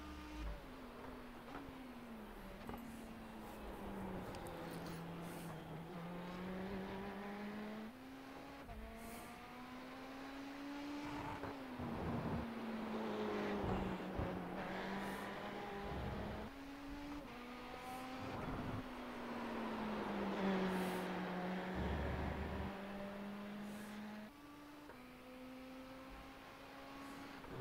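Tyres screech through the corners.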